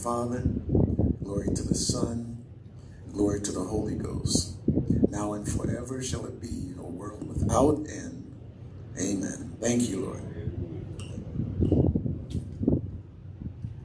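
An elderly man speaks through a microphone in a calm, preaching voice.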